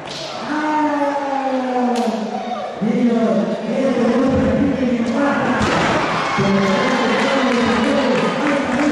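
A crowd chants loudly in a large echoing hall.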